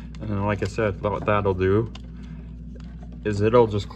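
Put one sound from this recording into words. A screwdriver turns a screw in a metal box with faint scraping clicks.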